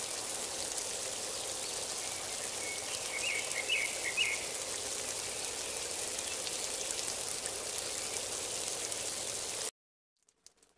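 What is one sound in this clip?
Wind rushes steadily through tree leaves outdoors.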